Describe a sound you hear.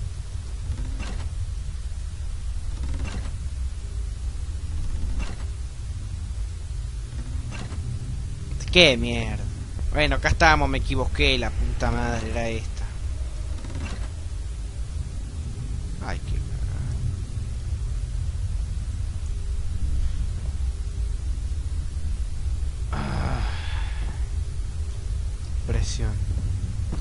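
Wooden levers clunk into place one at a time.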